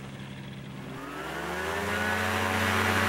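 A microlight engine roars up loudly close by.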